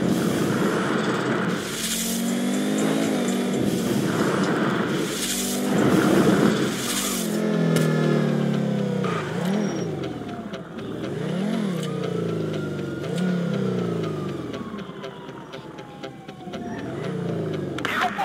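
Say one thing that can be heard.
A sports car engine revs up and down repeatedly.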